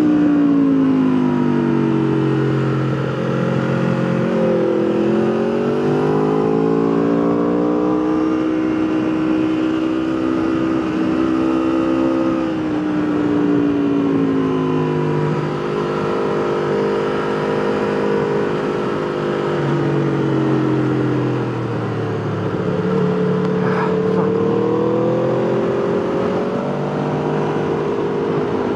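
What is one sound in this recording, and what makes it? A motorcycle engine roars close by, its pitch rising and falling as the rider speeds up and slows down.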